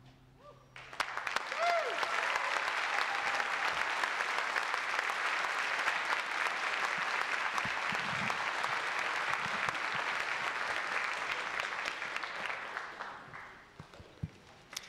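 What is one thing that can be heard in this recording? An audience applauds loudly in a large hall, then the applause dies away.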